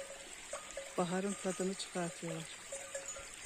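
A cow moos nearby.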